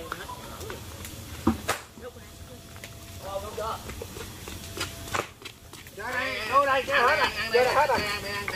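A fire crackles and pops.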